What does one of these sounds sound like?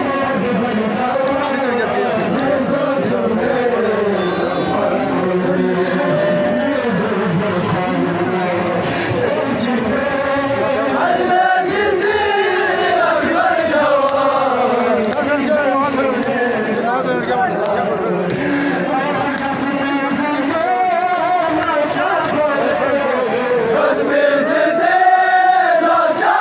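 Many hands beat rhythmically on chests.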